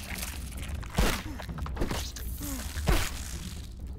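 A giant ant strikes with heavy thuds.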